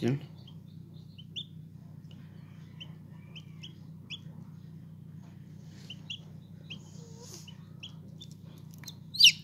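A newly hatched chick peeps softly and repeatedly from inside its shell.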